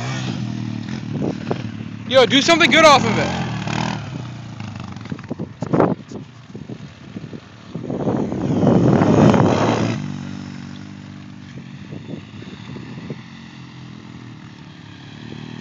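An all-terrain vehicle engine drones and revs nearby, outdoors.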